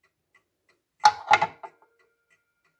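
A metal key clinks against wood as it is set down.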